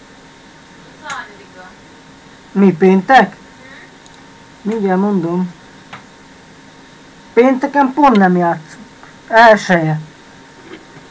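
A young man speaks in short bursts through a headset microphone, heard like an online call.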